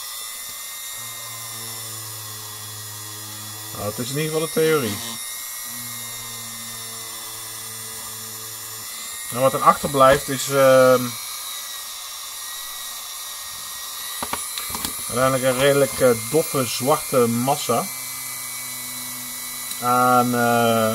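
A small rotary tool whirs steadily as it grinds.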